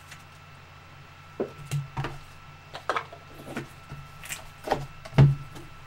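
Cardboard boxes knock and scrape.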